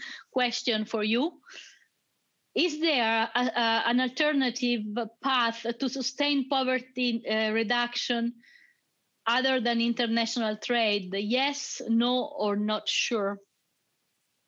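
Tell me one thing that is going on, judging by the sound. A young woman speaks calmly through an online call microphone.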